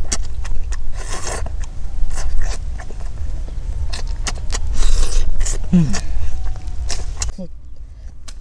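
A boy chews and smacks his lips while eating fish.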